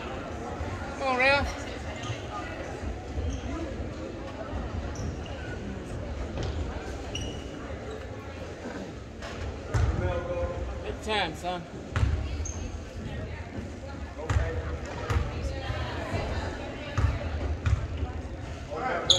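Sneakers squeak on the hardwood court.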